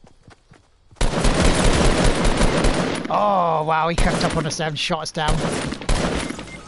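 Gunshots fire rapidly in quick bursts.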